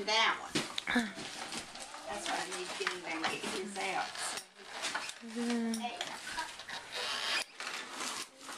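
Young children talk and squeal excitedly nearby.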